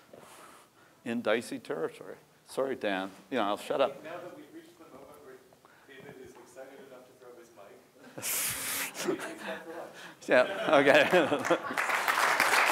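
A man speaks through a microphone in an echoing hall, talking calmly to an audience.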